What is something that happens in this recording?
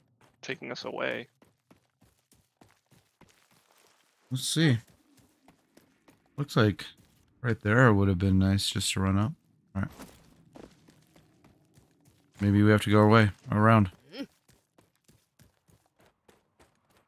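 Footsteps crunch quickly over rock and snow.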